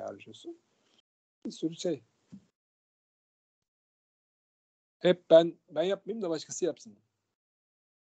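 A man speaks calmly through a microphone on an online call, in short bursts with pauses.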